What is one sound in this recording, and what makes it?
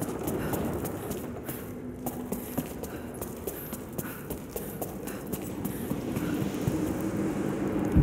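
Footsteps climb stone steps.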